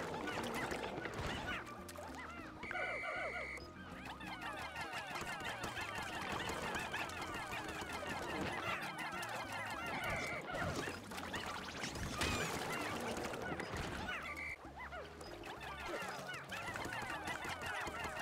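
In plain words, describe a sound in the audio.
Water splashes as a large creature thrashes about.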